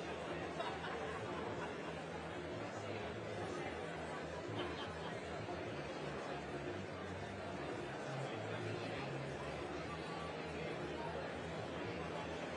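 A large audience chatters and murmurs throughout an echoing hall.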